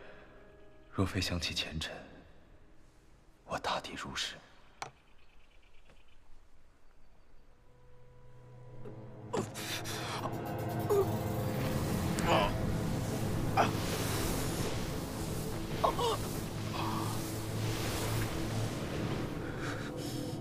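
A young man groans in pain close by.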